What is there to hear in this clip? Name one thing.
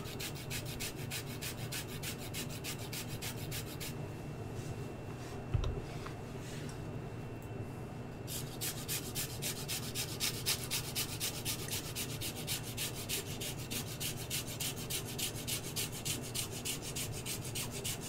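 A grater scrapes rapidly against ginger.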